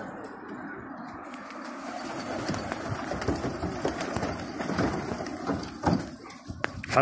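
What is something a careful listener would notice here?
Pigeons flap their wings loudly as they take off.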